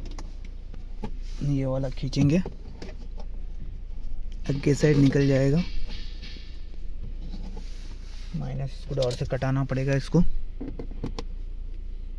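Hard plastic clicks and rattles as a hand handles it.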